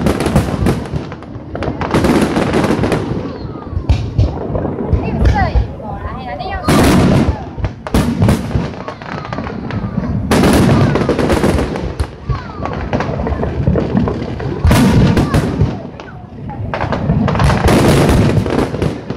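Fireworks boom and crackle loudly overhead.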